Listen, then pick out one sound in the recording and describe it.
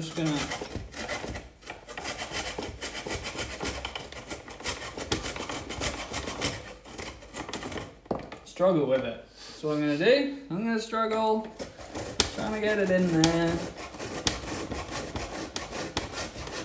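A food processor whirs and chops.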